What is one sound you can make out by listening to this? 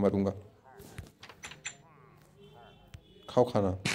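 A wooden door swings shut with a knock.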